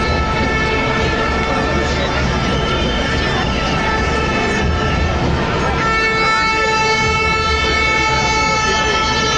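A large crowd chants and cheers loudly outdoors.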